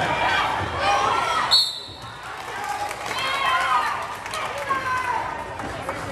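Sneakers squeak on a gym floor as players run.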